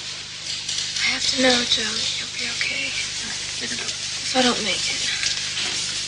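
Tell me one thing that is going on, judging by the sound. A young woman speaks weakly and slowly.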